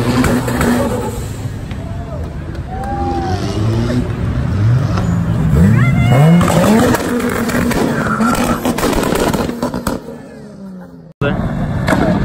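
A Toyota Supra accelerates hard.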